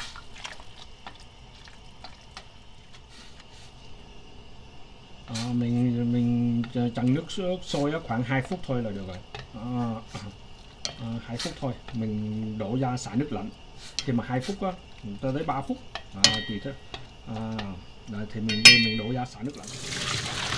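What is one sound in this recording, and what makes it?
Chopsticks tap against a metal pot.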